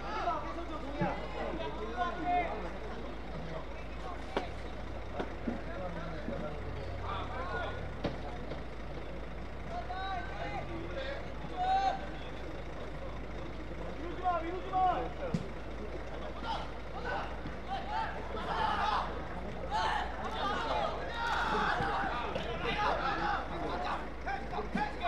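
Players shout to each other across an outdoor pitch.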